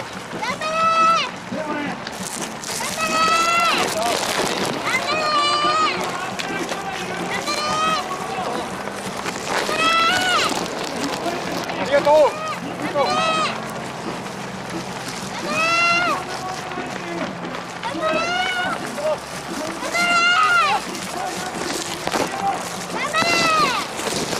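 Many runners' footsteps patter on a paved road.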